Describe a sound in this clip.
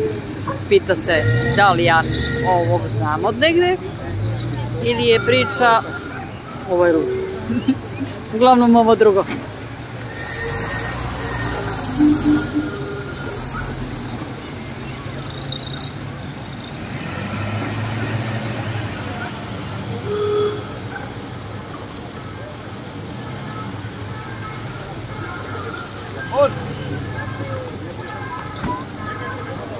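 Vintage car engines idle and rumble as the cars roll slowly past.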